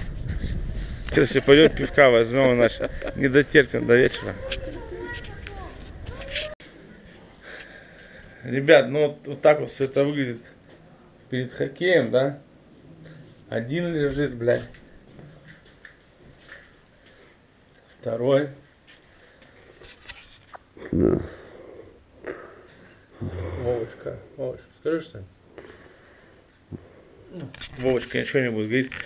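A middle-aged man talks with animation close to the microphone.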